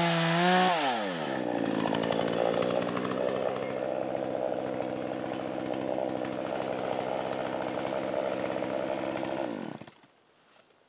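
A chainsaw idles with a lower, steady rumble, then stops.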